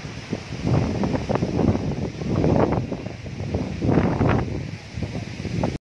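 Tree leaves rustle and thrash in the wind.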